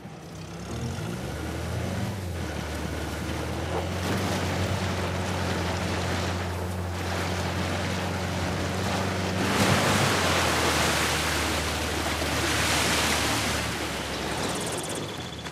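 An engine hums steadily as a vehicle drives over rough ground.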